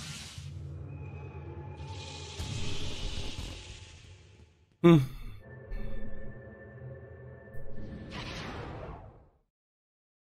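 Magical spell effects whoosh and chime.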